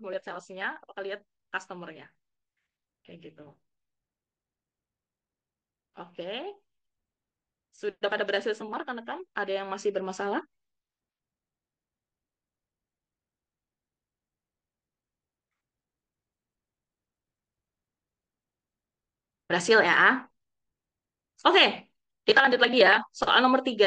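A young woman talks calmly over an online call, with pauses.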